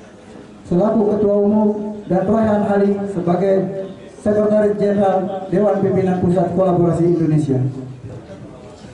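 A man speaks loudly and with emphasis into a microphone, heard through a loudspeaker.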